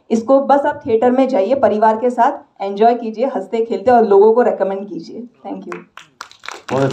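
A young woman speaks through a microphone with animation.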